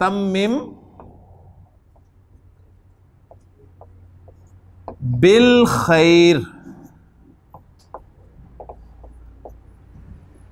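A marker taps and squeaks on a whiteboard.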